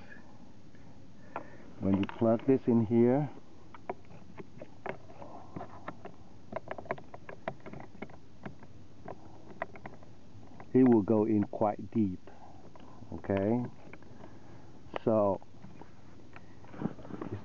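A plastic connector clicks and knocks as it is handled and pushed into a socket.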